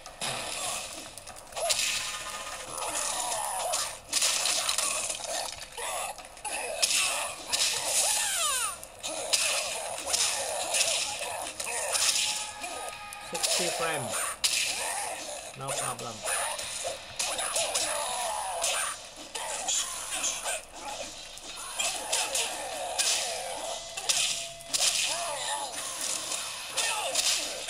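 Fighting game sounds of punches, kicks and grunts play through a small speaker.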